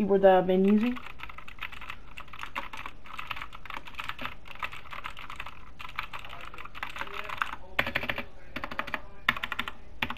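Fingers type quickly on a keyboard, the keys clacking.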